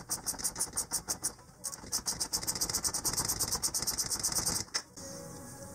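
A ratchet wrench clicks rapidly on an engine part.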